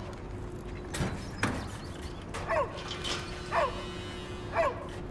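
A large metal door scrapes and clatters as it slides open.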